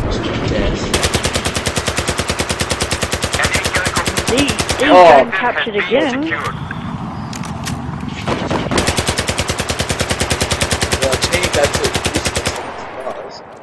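A rifle fires in long rapid bursts.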